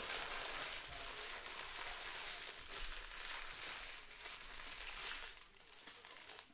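Card wrappers rustle and crinkle as they are handled.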